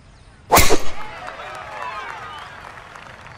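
A crowd cheers and applauds outdoors.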